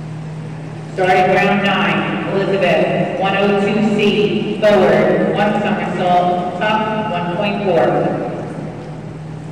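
A woman announces over a loudspeaker in a large echoing hall.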